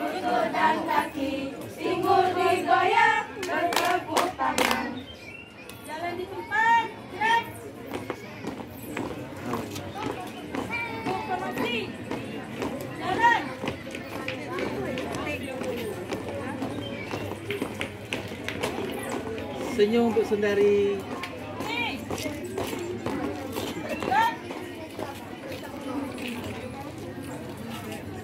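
A group of young women sing together outdoors.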